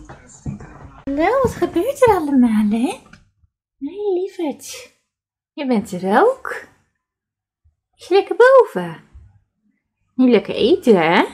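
A cat meows loudly and repeatedly close by.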